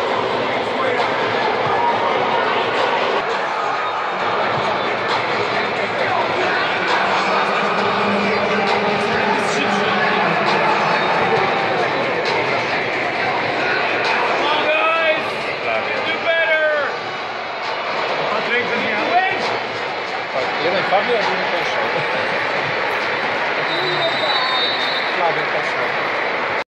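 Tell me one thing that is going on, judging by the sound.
A large crowd murmurs and chatters throughout.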